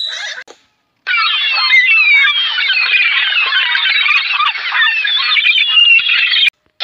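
Gulls call.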